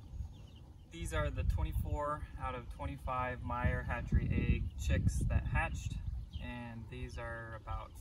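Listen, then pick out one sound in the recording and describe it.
A young man talks calmly, close by, outdoors.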